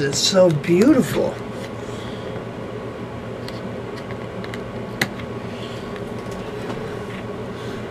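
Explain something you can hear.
Plastic clicks and rattles as a box is handled.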